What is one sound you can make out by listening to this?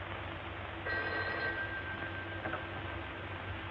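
A telephone rings briefly.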